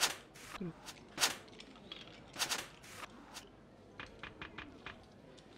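Playing cards snap down onto a table in quick clicks.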